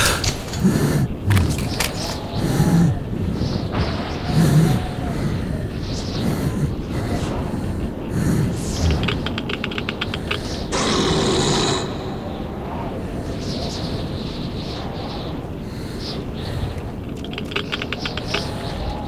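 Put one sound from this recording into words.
Footsteps crunch slowly over dry ground.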